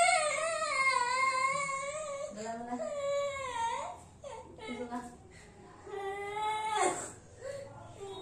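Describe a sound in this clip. A small child cries and wails loudly, close by.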